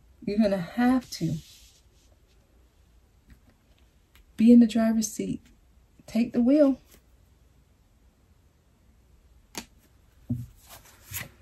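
Cards slide and tap softly on a cloth-covered table.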